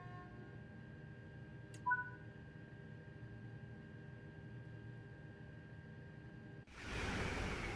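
A train engine hums steadily from inside a driver's cab.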